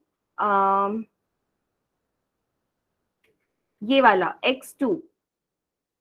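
A young woman speaks calmly through an online call microphone, in short phrases.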